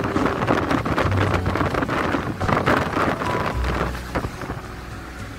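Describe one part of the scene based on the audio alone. Wind rushes and buffets loudly through an open car window.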